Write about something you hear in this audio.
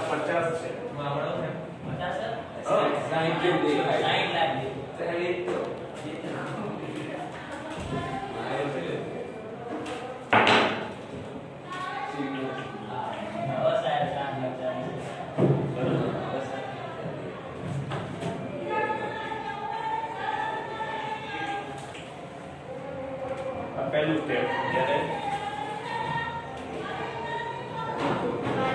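A middle-aged man speaks steadily and calmly in a room with some echo.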